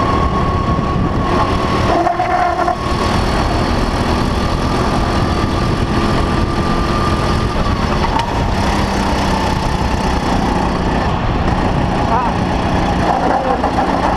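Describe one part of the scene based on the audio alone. A kart engine whines loudly and steadily close by, rising and falling in pitch with speed.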